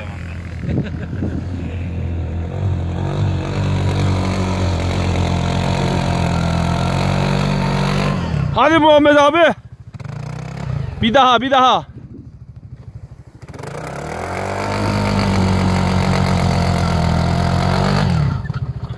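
A vehicle engine rumbles and revs as it churns through deep snow.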